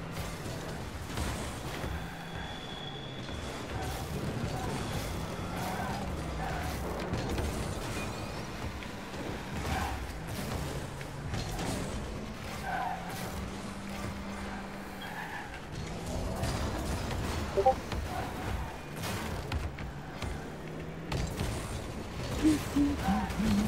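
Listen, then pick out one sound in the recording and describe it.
A car engine hums and revs steadily.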